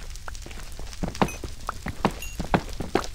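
A pickaxe chips at stone with quick knocks.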